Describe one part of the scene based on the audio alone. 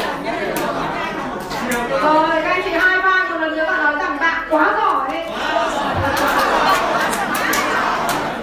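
A woman speaks with animation through a microphone and loudspeakers in an echoing room.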